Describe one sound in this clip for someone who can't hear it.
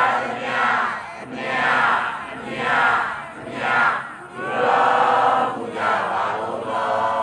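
A crowd of people chants a prayer together in a slow, rising and falling rhythm outdoors.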